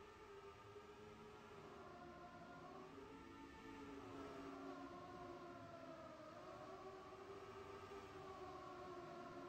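Several racing car engines whine loudly at high speed, their pitch rising and dipping.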